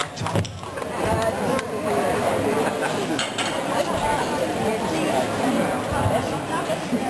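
A woman sings loudly through a microphone and loudspeakers.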